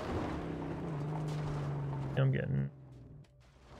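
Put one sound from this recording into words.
A car engine roars.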